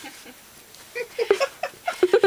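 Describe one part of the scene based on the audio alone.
A woman laughs softly nearby.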